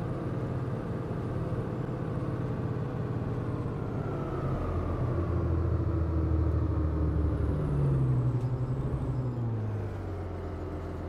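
A diesel city bus engine winds down as the bus slows to a stop.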